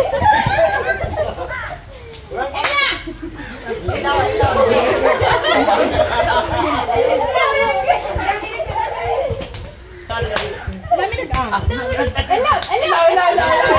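Hands clap.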